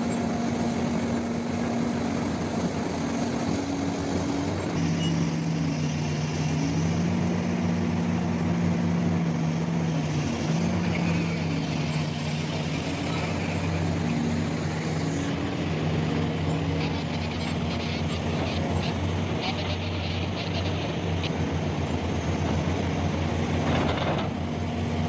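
A diesel engine rumbles steadily and shifts in pitch.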